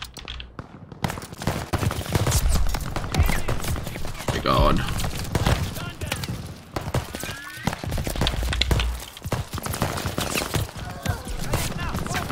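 Explosions boom and rumble nearby.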